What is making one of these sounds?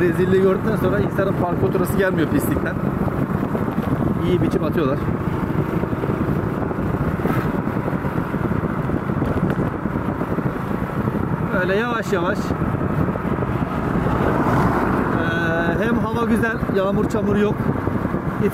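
A scooter engine hums steadily.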